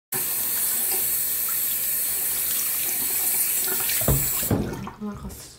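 Water runs from a tap and splashes steadily into a sink.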